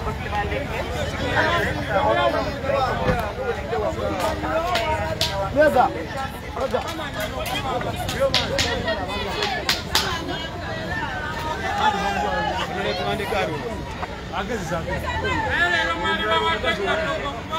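A crowd of men and women talk and call out all around, close by, outdoors.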